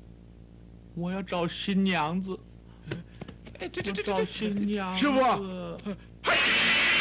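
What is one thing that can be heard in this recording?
Other men speak with animation.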